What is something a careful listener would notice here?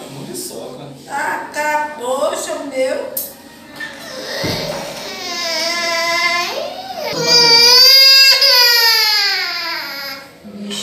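A small child cries and wails loudly close by.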